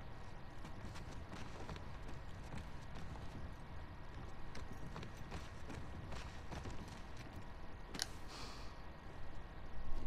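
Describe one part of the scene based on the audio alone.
Footsteps scuff across a hard floor.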